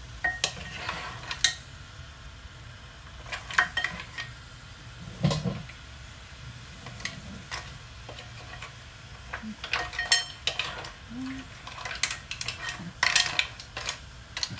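A wooden spatula scrapes and clatters against shellfish in a metal pan.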